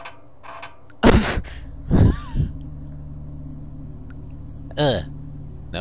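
A metal crane arm creaks and clanks as it swings.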